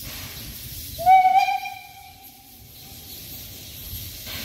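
A steam locomotive whistle blows in the distance.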